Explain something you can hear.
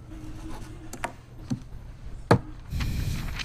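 A stamp thumps down on paper.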